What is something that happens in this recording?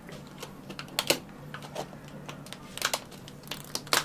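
Plastic lids snap onto plastic cups.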